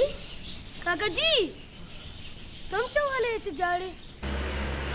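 A young boy speaks loudly and pleadingly, close by.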